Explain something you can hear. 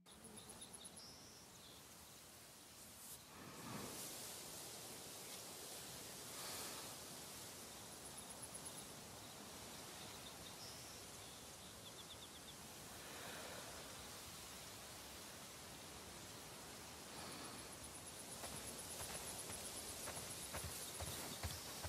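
Footsteps swish and rustle through dry grass.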